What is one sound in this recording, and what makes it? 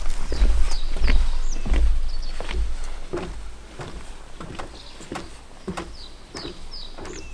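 Footsteps thud on a wooden suspension bridge, growing quieter as the walker moves away.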